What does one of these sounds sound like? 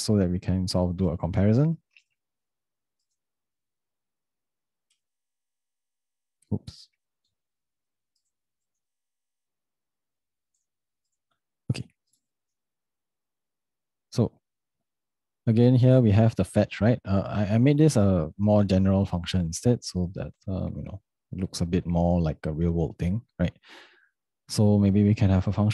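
A young man talks calmly and closely into a microphone, with pauses.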